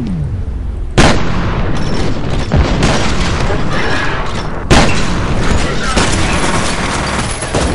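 A rifle fires loud single shots in an echoing space.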